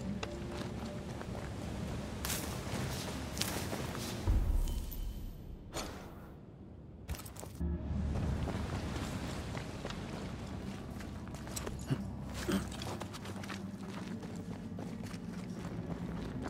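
Footsteps crunch over grass and stones.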